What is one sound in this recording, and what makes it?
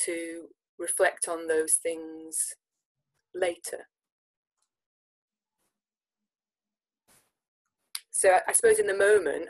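A woman speaks close to a microphone in short phrases, with pauses.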